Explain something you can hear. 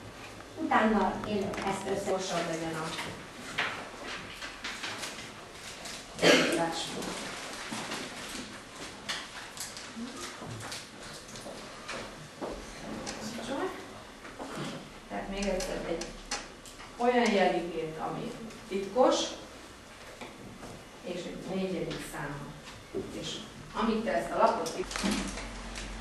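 A woman speaks calmly.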